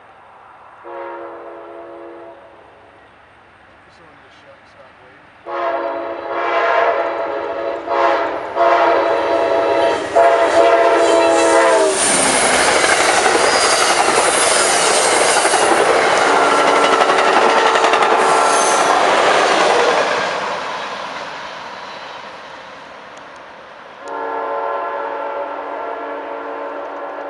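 A train horn blares in long, loud blasts.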